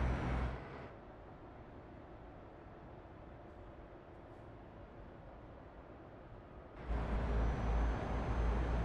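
A truck engine rumbles steadily, growing louder near the end.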